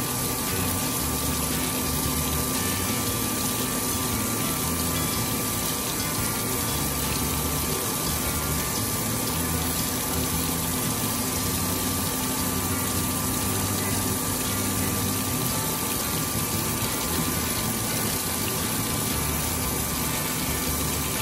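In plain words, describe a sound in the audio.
A grinding wheel whirs steadily against glass.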